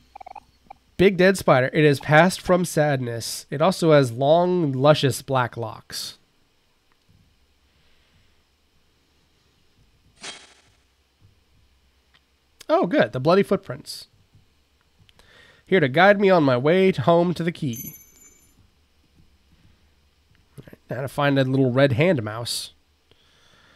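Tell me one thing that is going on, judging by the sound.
A young man talks with animation, close to a microphone, in short bursts.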